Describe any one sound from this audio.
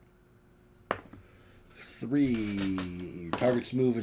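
Dice clatter into a tray.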